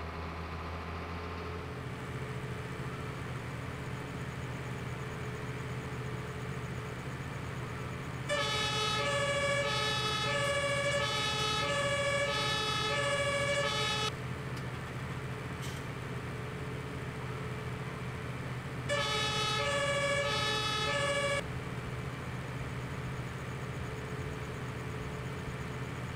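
A truck engine hums steadily as it drives along.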